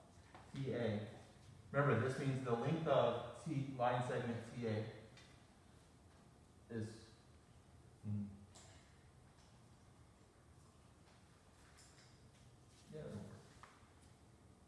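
A man speaks calmly, close by and slightly muffled.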